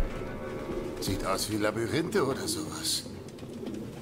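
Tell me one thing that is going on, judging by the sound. A man speaks calmly in a low, gruff voice.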